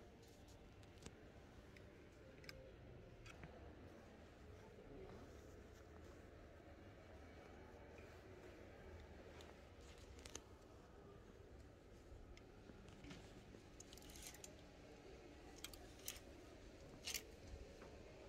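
Plastic hangers click and scrape along a clothes rail.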